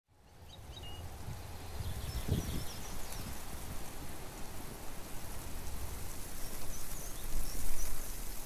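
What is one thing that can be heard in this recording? Wind rumbles and gusts across the microphone outdoors.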